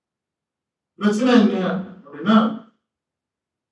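A man speaks into a microphone over a loudspeaker, calmly and formally.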